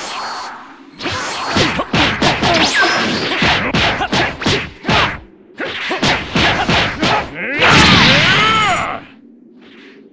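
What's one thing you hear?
Energy blasts crackle and boom in rapid bursts.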